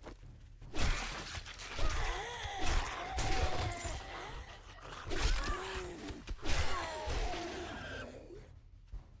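Knives slash and stab into flesh.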